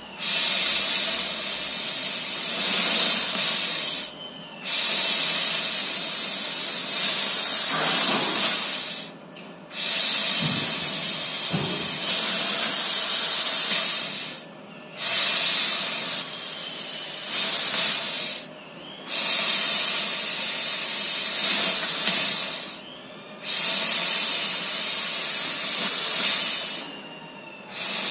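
A laser cutting machine hisses loudly in bursts, with short pauses between them.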